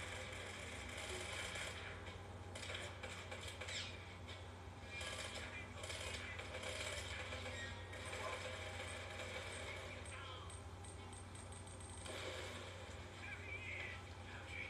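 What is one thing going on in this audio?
Action game sounds and music play from a small television speaker.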